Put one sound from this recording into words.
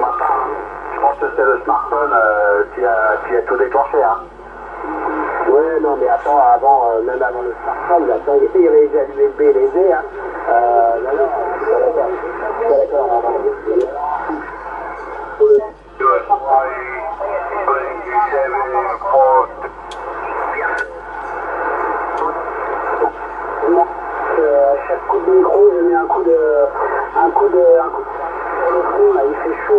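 Voices talk through a thin, narrow-sounding radio loudspeaker.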